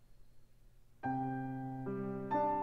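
A piano bursts into loud, ringing chords.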